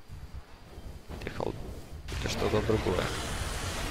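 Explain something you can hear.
Magic spells whoosh and crackle in a video game.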